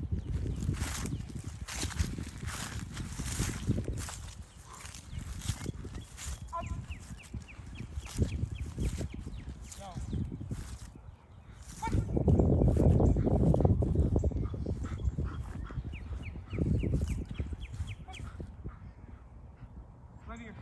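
A man calls out short commands to a dog.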